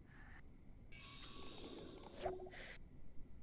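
A soft electronic chime sounds.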